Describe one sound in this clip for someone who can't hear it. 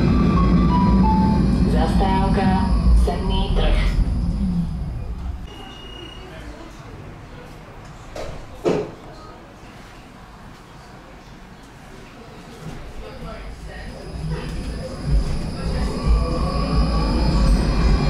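A tram's motor whines, its pitch gliding up and down.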